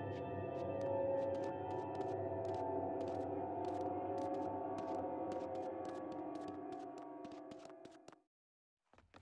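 Footsteps walk slowly on hard ground.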